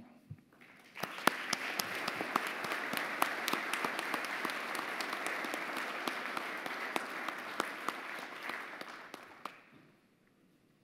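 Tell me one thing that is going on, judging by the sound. An audience applauds steadily, then the clapping fades away.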